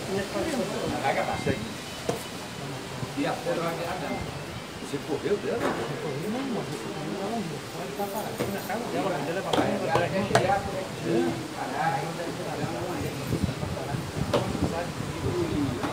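Several men talk nearby in a lively way, outdoors.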